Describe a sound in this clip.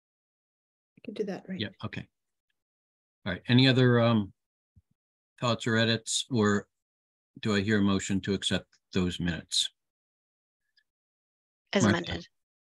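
An elderly woman talks with animation over an online call, pausing between phrases.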